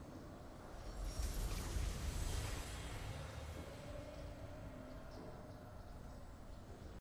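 A triumphant victory fanfare swells and then fades.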